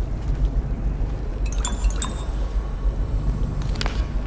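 A glass bottle clinks as it is picked up.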